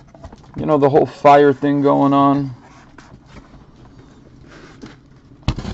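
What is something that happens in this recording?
Cardboard box flaps scrape and rustle as they are opened.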